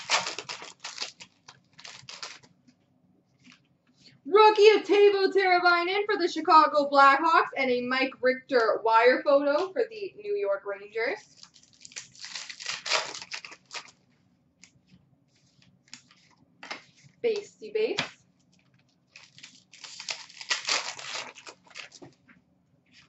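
Cards and a foil wrapper rustle and flick in someone's hands.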